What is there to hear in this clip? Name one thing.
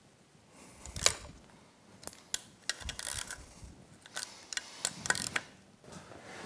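Small metal parts click and clink as they are handled.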